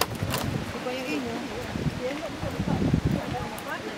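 A plastic bottle crinkles and clatters as a monkey handles it.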